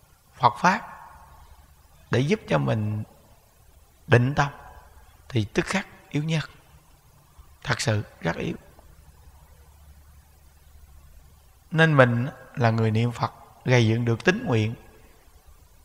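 A man speaks calmly and slowly into a close microphone, with pauses.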